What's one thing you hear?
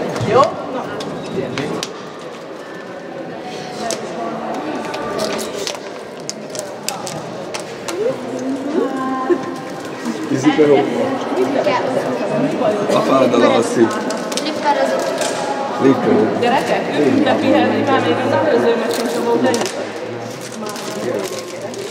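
Young girls chatter in the background.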